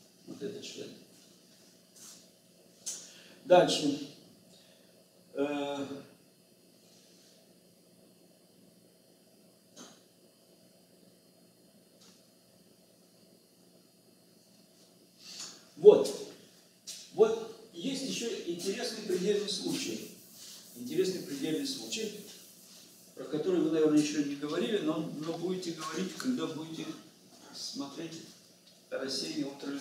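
An elderly man lectures calmly, pausing often.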